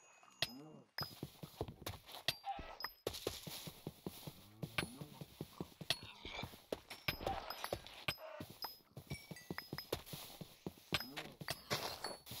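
A pig grunts now and then.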